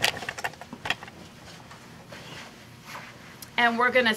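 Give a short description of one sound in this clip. Fabric rustles as a quilt is handled.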